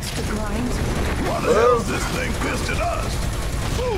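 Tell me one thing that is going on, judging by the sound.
A man shouts angrily through game audio.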